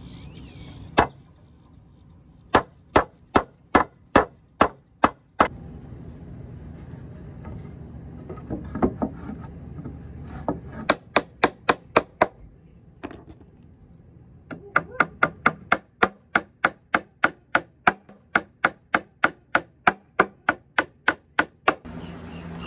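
A hammer strikes wood in quick repeated blows.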